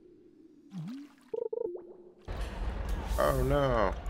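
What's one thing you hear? A fishing line whips out with a short swish.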